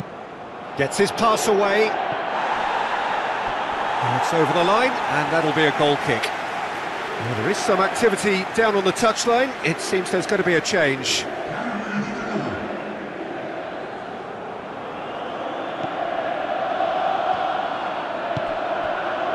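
A large stadium crowd murmurs and roars steadily in the distance.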